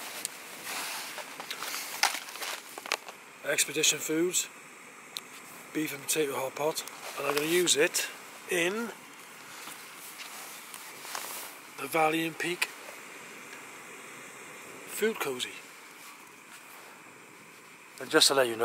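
A foil food pouch crinkles as it is handled.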